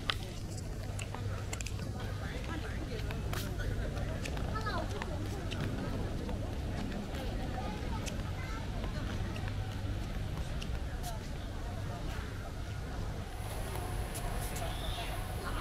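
A young man talks close to the microphone as he walks.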